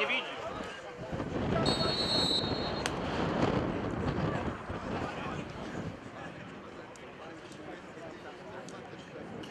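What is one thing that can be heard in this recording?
A crowd murmurs steadily in an open stadium.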